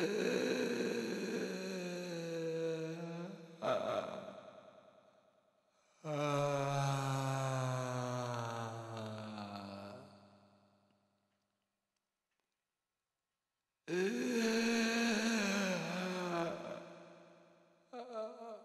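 A group of voices sings together in long, held notes.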